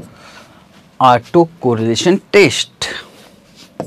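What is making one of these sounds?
A man speaks calmly, close by.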